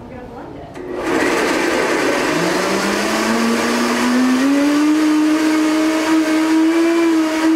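A blender whirs loudly, its motor rising in pitch as it speeds up.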